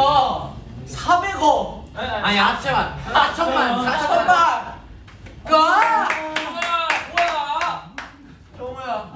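Young men laugh loudly.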